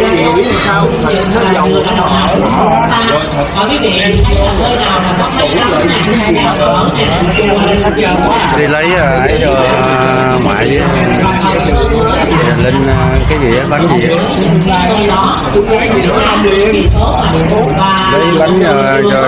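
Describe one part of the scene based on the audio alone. Music with singing plays loudly through loudspeakers.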